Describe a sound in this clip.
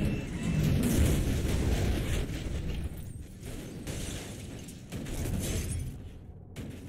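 Glass shatters and metal crunches in a crash.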